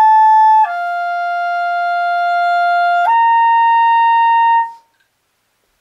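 A clarinet plays three long, steady notes, the last one rising higher.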